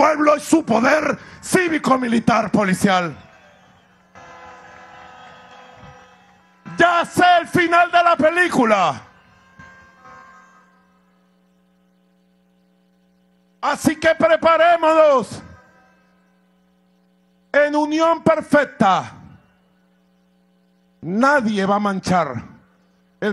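A man speaks loudly and passionately into a microphone over loudspeakers, in bursts with pauses.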